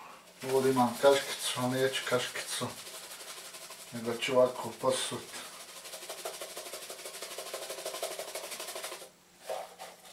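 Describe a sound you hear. Spices rattle as a jar is shaken over a bowl.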